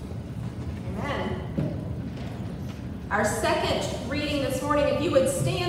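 A woman sings through a microphone in a large echoing hall.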